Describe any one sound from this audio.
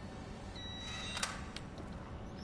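Keypad buttons beep as they are pressed.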